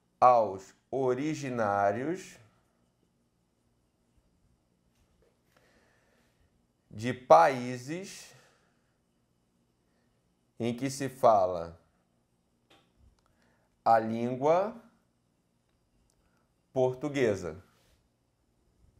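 A man speaks in short, clear phrases with pauses between them.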